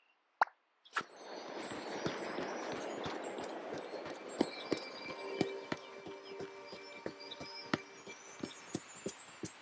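A magical sparkle shimmers and twinkles steadily.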